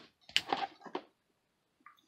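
Plastic card cases clack and rattle in a box.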